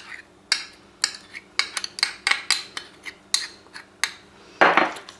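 A spoon taps and scrapes against a metal bowl.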